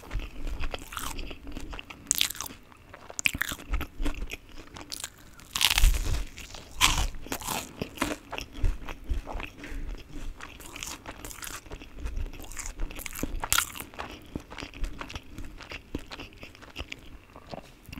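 Chopsticks clack against a metal pan.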